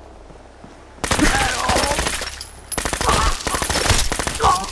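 Guns fire in rapid bursts at close range.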